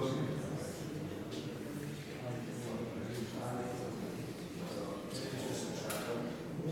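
A man chants in a low, steady voice, echoing through a large hall.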